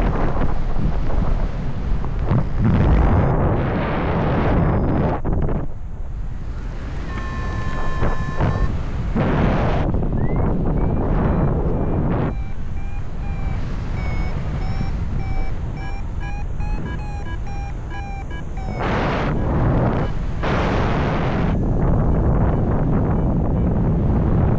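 Wind rushes loudly past in open air, gusting stronger and weaker.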